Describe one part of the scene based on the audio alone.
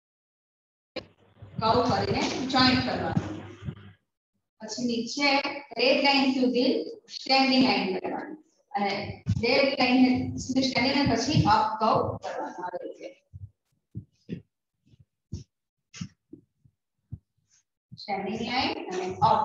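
A young woman speaks clearly, as if teaching.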